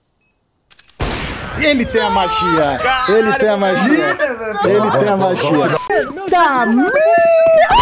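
A man laughs loudly into a close microphone.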